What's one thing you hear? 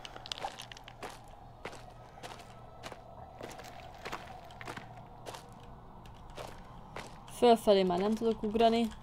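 Footsteps thud slowly and evenly on stone.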